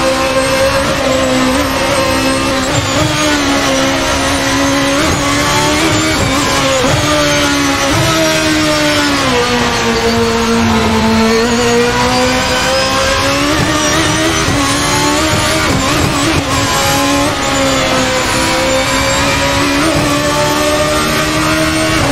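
A racing car engine screams at high revs, dropping and rising in pitch as the gears shift.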